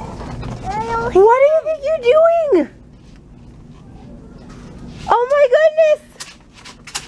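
A baby squeals in high, excited bursts.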